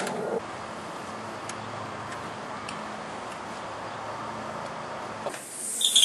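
A key scrapes and turns in a door lock.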